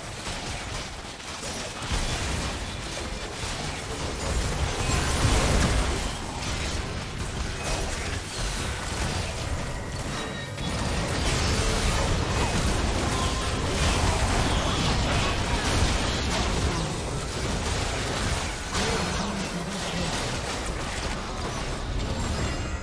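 Game spell effects whoosh and crackle in a fast fight.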